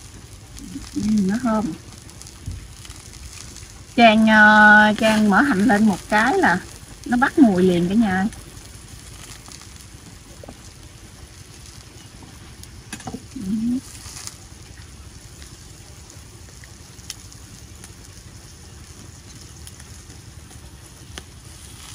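Shells clink against a plate.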